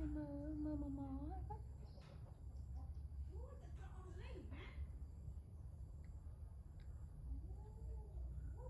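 A young woman speaks softly and coos up close.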